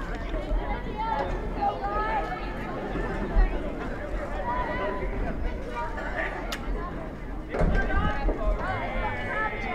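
A crowd of spectators chatters and calls out outdoors.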